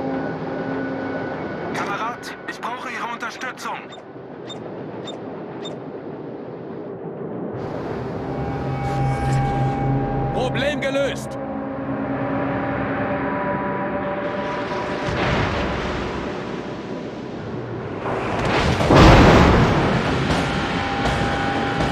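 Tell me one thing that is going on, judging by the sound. Ship engines rumble and waves rush past a hull.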